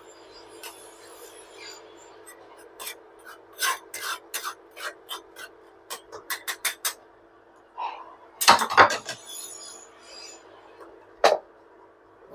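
A metal spoon clinks and scrapes against a wire strainer in a pot.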